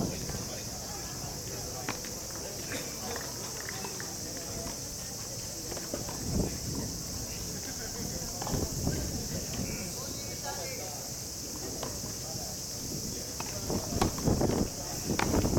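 A tennis ball is struck with a distant pop now and then.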